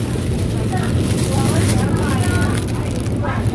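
A plastic bag crinkles as it is picked up.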